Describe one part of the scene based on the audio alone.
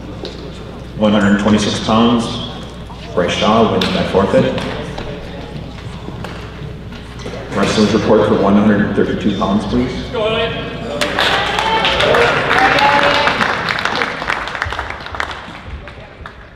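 A man speaks loudly, echoing in a large hall.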